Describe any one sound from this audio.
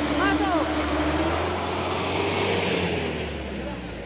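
A heavy truck engine rumbles loudly as the truck drives past and fades away.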